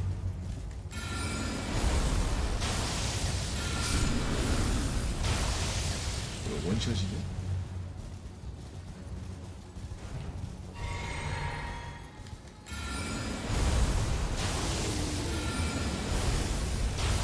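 Ghostly figures hiss and roar in a burst of sound.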